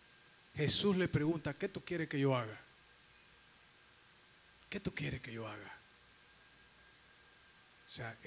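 A man speaks into a microphone in short bursts, heard through loudspeakers in a room.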